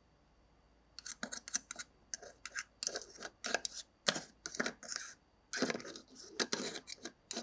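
A plastic toy spatula scrapes and clatters against a plastic pot.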